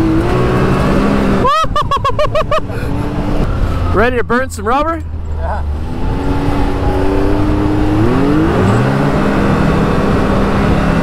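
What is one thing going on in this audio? An engine drones steadily and revs up.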